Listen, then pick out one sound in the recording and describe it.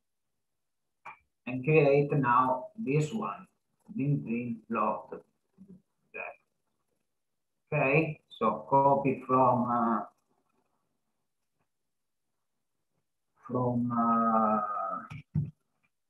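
A man speaks calmly through an online call microphone, pausing now and then.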